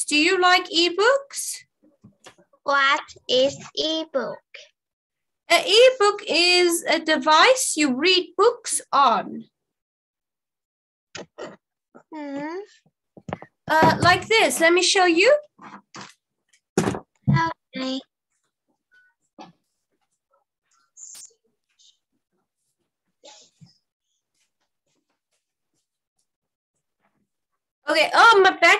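A woman speaks clearly and with animation over an online call.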